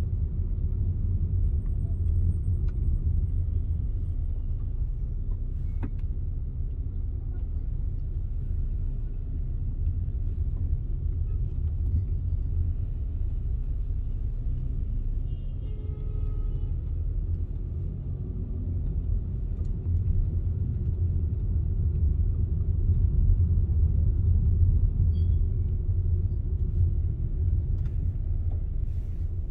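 A car engine hums low and steady from inside the car as it creeps through traffic.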